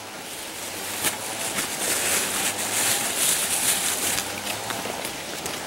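Large leaves rustle and crinkle as they are handled.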